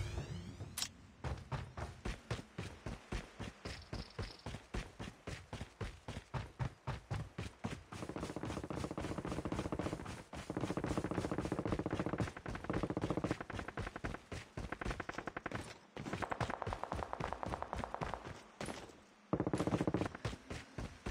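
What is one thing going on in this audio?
Quick footsteps run over dirt and grass.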